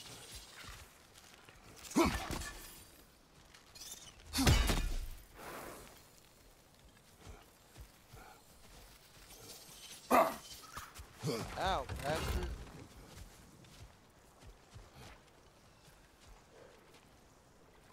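Heavy footsteps tread on soft ground.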